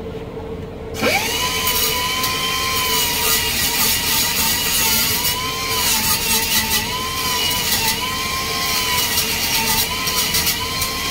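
An angle grinder whines loudly as it grinds metal, its pitch dipping under load.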